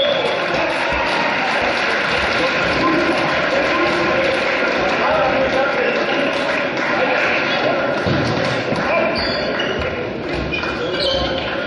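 Players shout and cheer in a large echoing hall.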